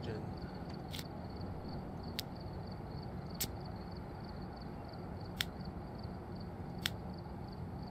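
Short, sharp interface clicks sound every second or two.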